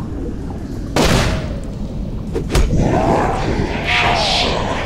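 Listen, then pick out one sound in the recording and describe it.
A body thuds heavily onto a stone floor.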